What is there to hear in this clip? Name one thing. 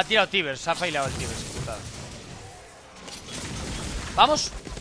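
Magic blasts and weapon clashes ring out in a fierce fantasy battle.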